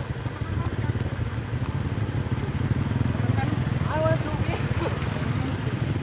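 A motor scooter engine hums as the scooter rides past.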